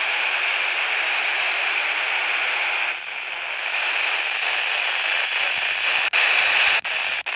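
A handheld radio hisses with loud static.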